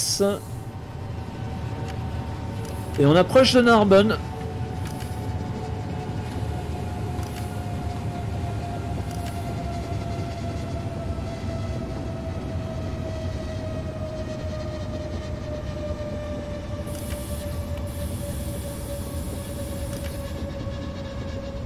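An electric motor whines and slowly drops in pitch as the train slows.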